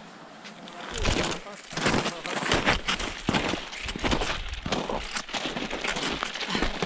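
Footsteps crunch on snow outdoors.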